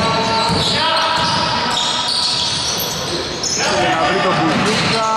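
Players call out to each other loudly.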